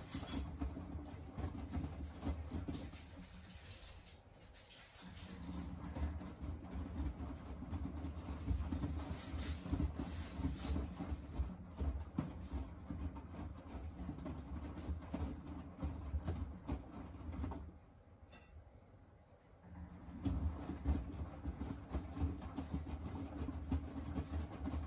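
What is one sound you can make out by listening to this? A washing machine drum turns with a low rumbling hum.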